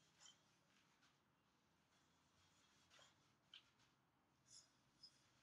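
A young woman breathes out sharply with each punch, close by.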